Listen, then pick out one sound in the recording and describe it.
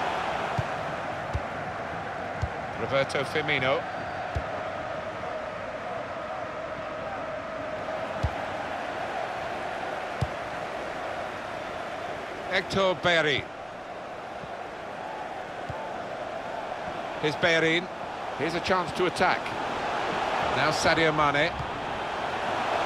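A large crowd murmurs and cheers steadily in a stadium.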